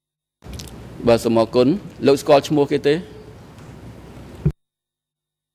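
A man speaks into a microphone in a formal, measured voice.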